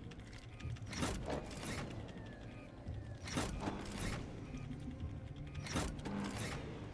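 A metal lever clanks loudly as it is pulled.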